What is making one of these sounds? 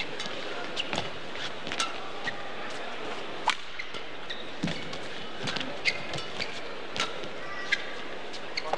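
Badminton rackets strike a shuttlecock back and forth in a sharp rally.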